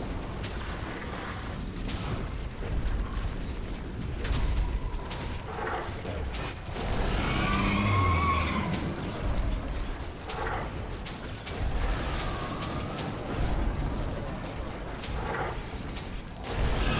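Weapons clash and strike repeatedly.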